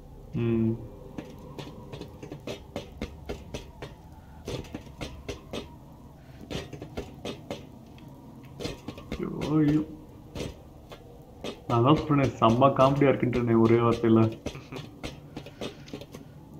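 Footsteps clank on metal stairs and wooden planks.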